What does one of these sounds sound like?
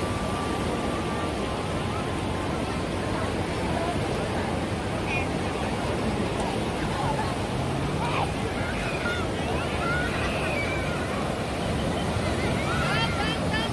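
A crowd of men, women and children chatter and call out all around, outdoors.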